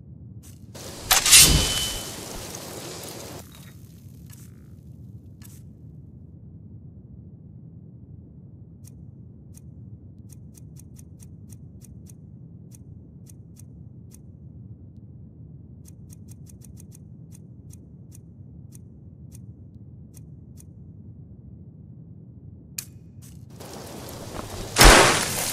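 A magic spell crackles and hums from a hand.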